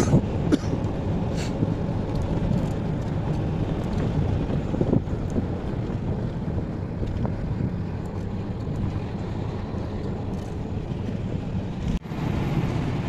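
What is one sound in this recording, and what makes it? A vehicle's engine rumbles steadily while driving.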